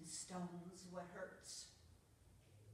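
An elderly woman speaks clearly.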